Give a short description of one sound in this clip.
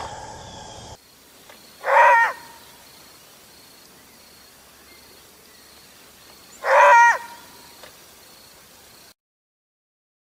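A wild canine sniffs among dry leaves on the ground.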